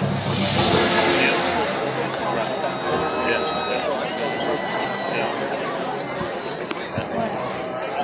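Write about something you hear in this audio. A marching band plays brass and drums across an open stadium.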